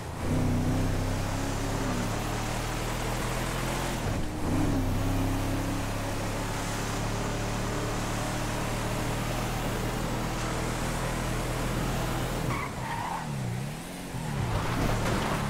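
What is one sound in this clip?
A truck engine drones steadily, then revs up and down.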